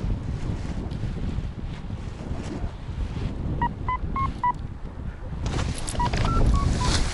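Wind rushes and buffets loudly outdoors.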